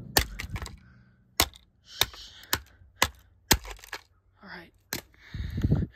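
A hammer strikes a plastic smoke alarm with sharp cracking blows.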